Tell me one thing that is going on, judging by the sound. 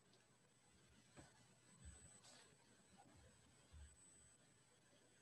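Paper rustles as pages turn.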